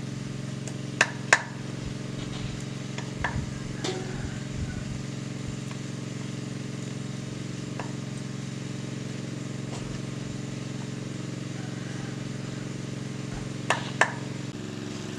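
A knife taps and scrapes on a wooden board.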